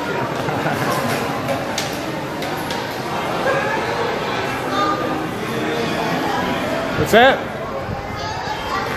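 A crowd of people chatters throughout, echoing in a large hall.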